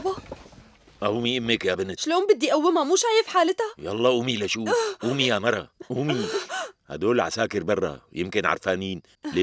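A middle-aged man speaks in a low, emotional voice, close by.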